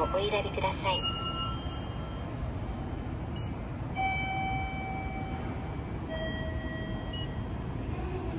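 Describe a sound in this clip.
A ticket machine beeps with short electronic tones.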